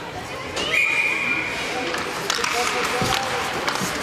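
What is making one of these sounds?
Hockey sticks clack against the ice and the puck in an echoing indoor rink.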